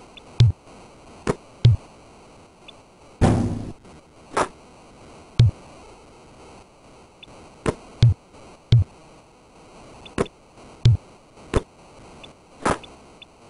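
A video game basketball bounces with dull, repeated thuds.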